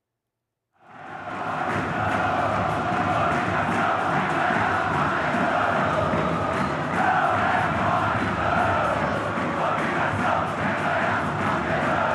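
A large stadium crowd chants and roars.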